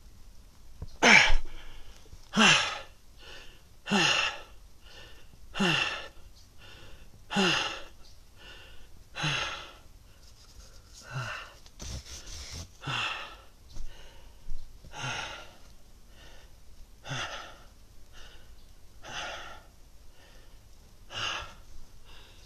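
A man exhales hard with a grunt close by, over and over at a steady pace.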